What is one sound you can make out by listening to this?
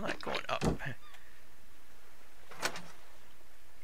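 A metal chest lid clanks open.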